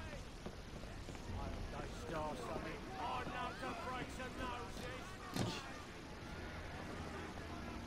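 Footsteps run across creaking wooden boards and stairs.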